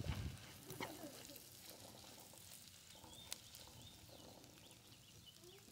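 A spoon scrapes and stirs food in a metal pan.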